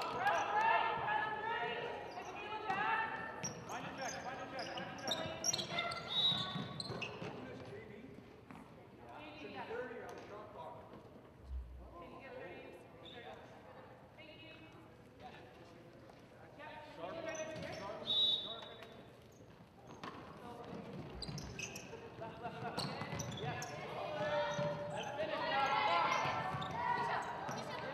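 Young women shout and call out to each other across an echoing gym.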